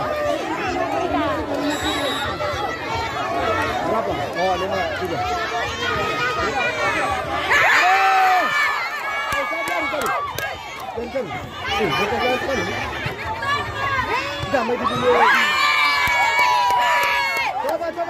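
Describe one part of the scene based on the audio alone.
A volleyball is struck by hand.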